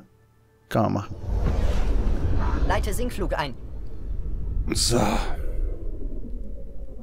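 A spaceship's engines roar with a deep rumble.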